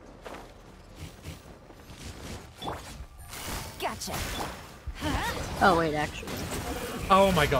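Magical blasts crackle and boom in quick bursts.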